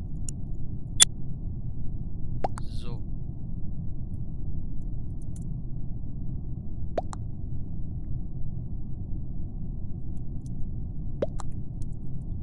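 Short game notification blips sound now and then.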